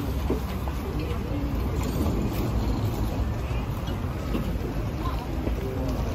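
Men and women chat quietly in the background outdoors.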